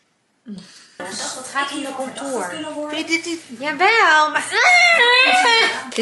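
A young woman talks and laughs.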